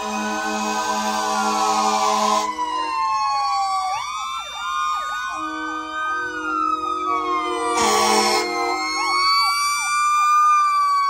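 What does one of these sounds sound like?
Several emergency sirens wail and yelp close by.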